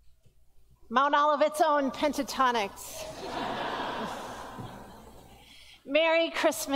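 A woman chants in a clear voice through a microphone.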